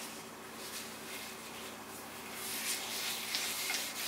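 A cloth wipes oil over a wooden board.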